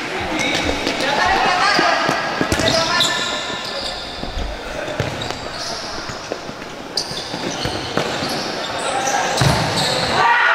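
A ball thuds against a foot.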